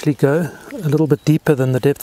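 A fishing reel clicks as a line is wound.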